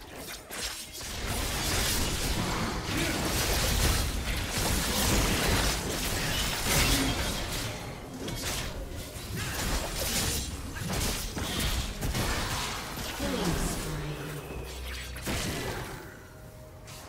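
Magic blasts and clashing weapons crackle and boom in a game battle.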